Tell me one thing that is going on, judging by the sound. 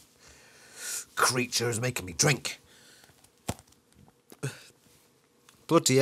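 A snack wrapper crinkles in a man's hand.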